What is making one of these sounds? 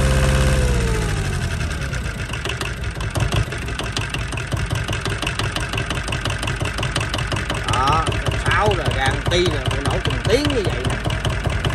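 A diesel engine runs close by, slowing at first and then idling with a steady, rapid knocking.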